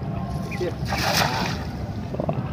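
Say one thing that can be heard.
A cast net splashes down onto water.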